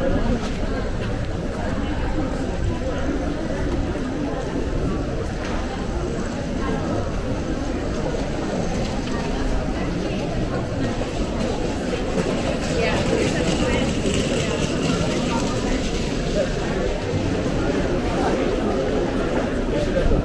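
Footsteps walk on paving stones.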